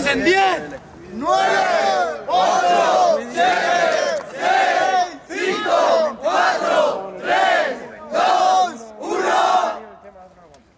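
A young man raps rhythmically and forcefully, close by.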